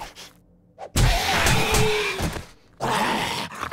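A zombie snarls and growls up close.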